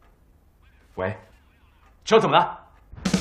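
A man speaks urgently into a phone.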